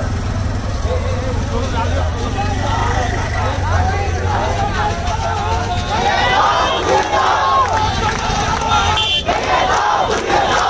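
A large outdoor crowd of men talks and shouts at once.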